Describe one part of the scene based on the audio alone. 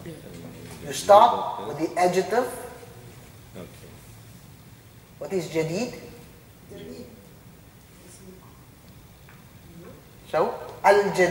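A man speaks calmly, pausing often.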